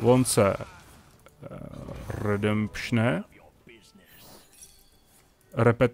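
A magical chime rings out as a secret is revealed.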